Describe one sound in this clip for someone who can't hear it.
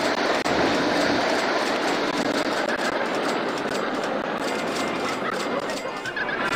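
A roller coaster train rattles along a wooden track.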